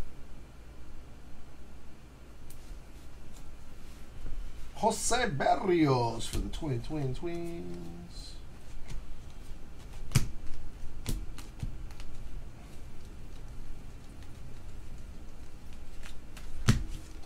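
Trading cards flick and rustle as they are shuffled by hand.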